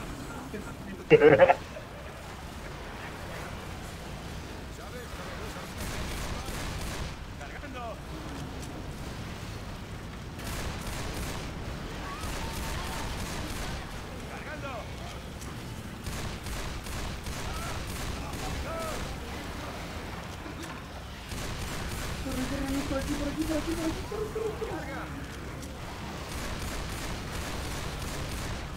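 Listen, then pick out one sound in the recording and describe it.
A pistol fires in quick bursts of shots.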